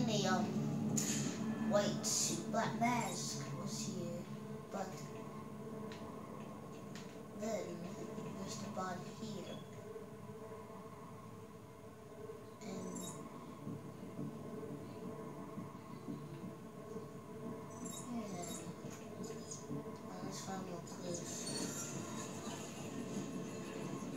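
Game sound effects and music play from a television's speakers.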